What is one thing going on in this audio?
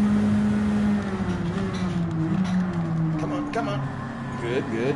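A racing car engine drops in pitch as the car brakes and downshifts.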